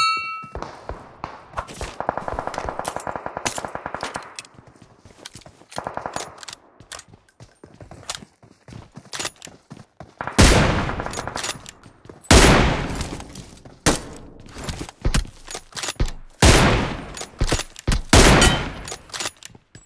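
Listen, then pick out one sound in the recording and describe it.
Footsteps thud on a wooden floor and stairs.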